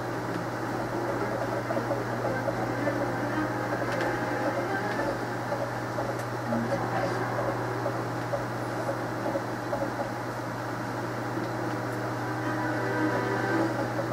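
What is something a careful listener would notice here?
Video game sound effects and music play through a television loudspeaker.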